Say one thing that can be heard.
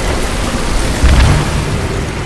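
Water gushes and splashes from pipes.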